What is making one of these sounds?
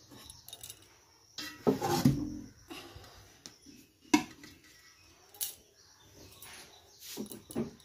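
Metal pots clink and clatter.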